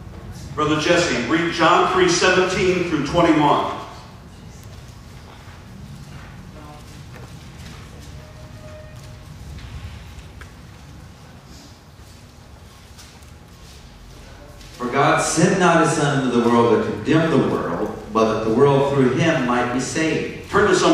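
A man speaks calmly into a microphone, heard through a loudspeaker.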